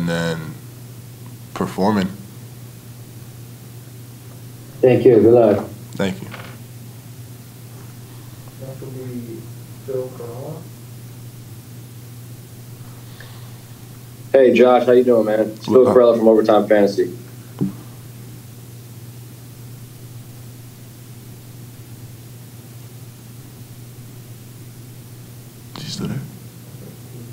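A young man speaks calmly into a microphone, with long pauses.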